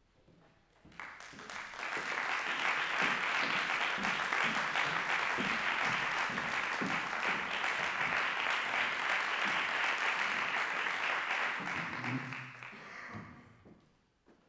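An audience applauds in an echoing hall.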